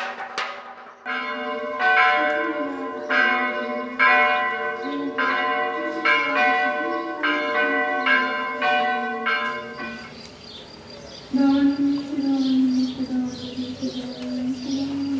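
A man chants a prayer in a deep, steady voice.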